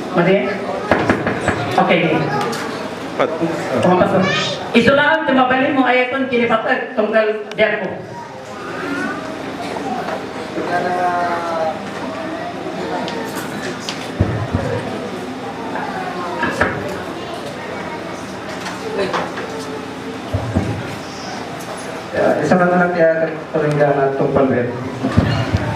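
A middle-aged man speaks into a microphone over a loudspeaker, in an echoing hall.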